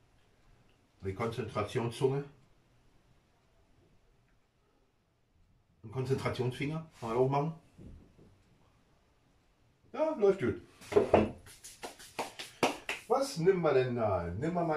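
A middle-aged man talks calmly close by, in short bursts.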